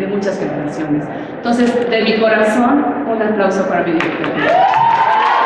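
A woman speaks into a microphone over a loudspeaker in a large hall.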